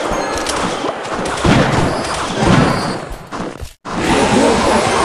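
Video game battle sound effects clang and burst.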